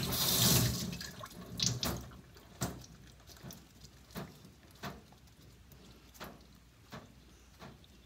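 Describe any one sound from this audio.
Water runs into a metal sink.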